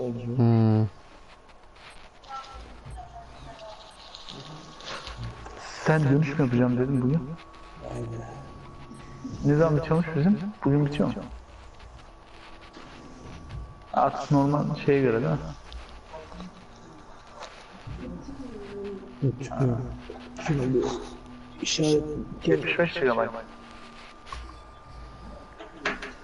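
A man talks casually into a microphone, close up.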